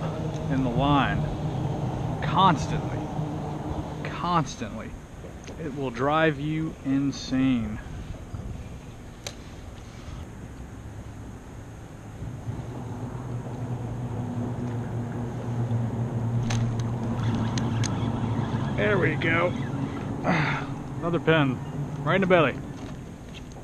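A man talks calmly close to the microphone.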